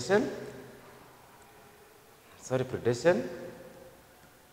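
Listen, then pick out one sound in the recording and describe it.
A man speaks calmly and clearly, like a teacher, in short phrases.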